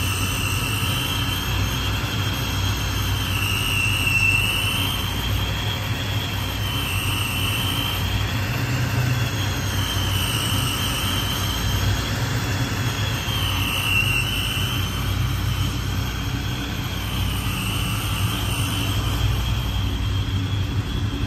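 A supercharger on an idling car engine whines, its pitch rising and falling gently.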